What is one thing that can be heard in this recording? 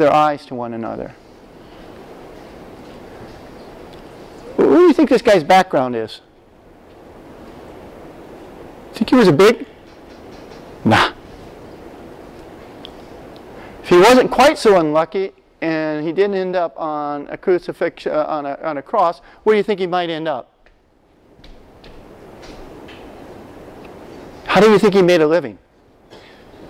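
A man lectures calmly through a microphone in a large room, with pauses between phrases.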